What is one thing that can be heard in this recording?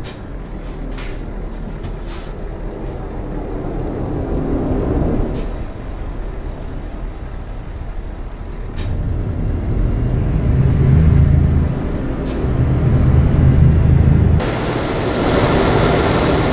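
A truck engine rumbles steadily, growing louder as it speeds up.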